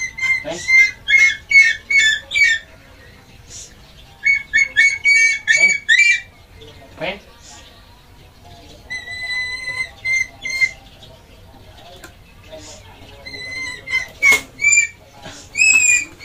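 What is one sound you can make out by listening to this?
A bird of prey gives shrill, piercing cries in quick bursts.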